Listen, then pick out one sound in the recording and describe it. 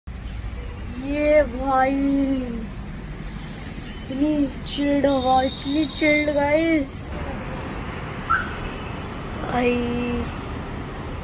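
A young girl sings playfully close by.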